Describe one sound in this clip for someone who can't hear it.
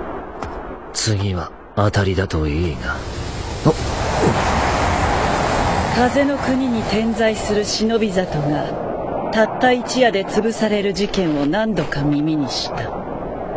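A young man speaks calmly and coldly.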